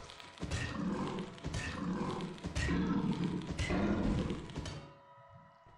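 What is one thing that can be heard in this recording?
A shovel strikes a creature again and again with heavy thuds.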